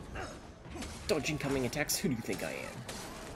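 A blade slashes into flesh with a wet thud.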